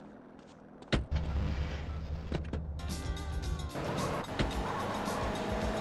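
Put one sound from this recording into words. A car engine starts and rumbles as the car drives off.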